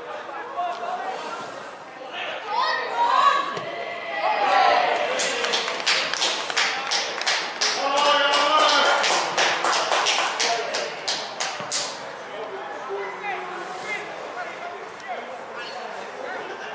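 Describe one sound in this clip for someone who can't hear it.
Players shout and call out to each other across an open pitch outdoors.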